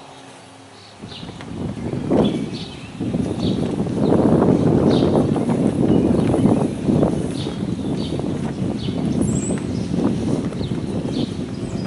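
Wind gusts loudly across the open air outdoors.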